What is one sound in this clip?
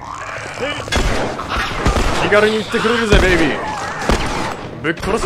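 Gunshots bang loudly.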